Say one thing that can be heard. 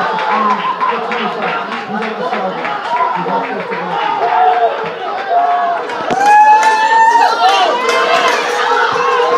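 A crowd of young people cheers and shouts outdoors.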